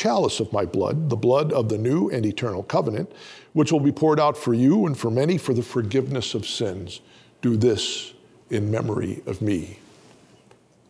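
An elderly man chants a prayer into a microphone in a slow, sung voice.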